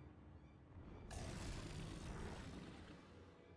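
A large beast lets out a deep, rough roar.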